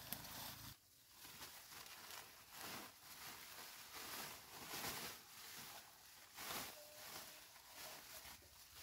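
A plastic tarp rustles and crinkles as it is folded.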